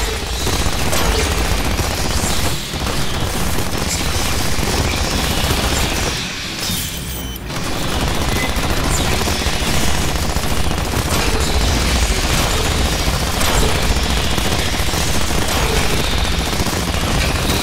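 Rapid automatic gunfire rattles loudly.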